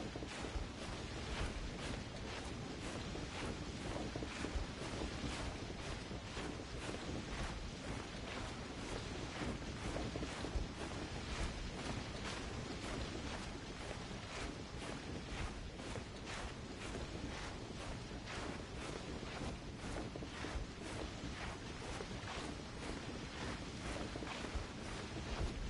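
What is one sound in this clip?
Hands and feet scrape and thud against rock during a steady climb.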